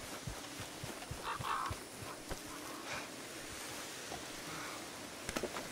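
A horse's hooves thud on dry ground.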